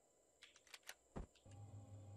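A short sharp click sounds as a block snaps into place.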